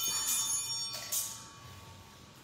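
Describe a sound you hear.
Small hand bells ring brightly and ring out in an echoing room.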